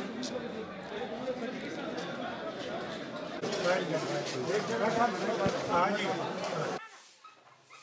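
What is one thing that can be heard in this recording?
A crowd of men shouts and talks loudly outdoors.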